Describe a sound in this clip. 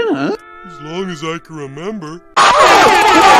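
A cartoon man speaks in a shaky, worried voice.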